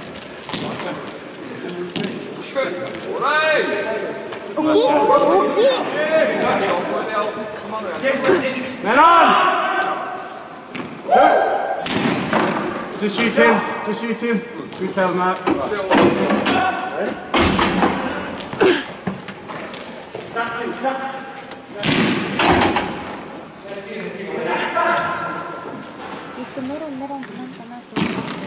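Young players shout and call out to each other across an echoing rink.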